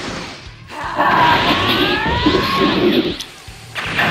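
Energy beams roar loudly.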